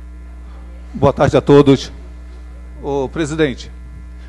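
A second man speaks through a microphone in short phrases.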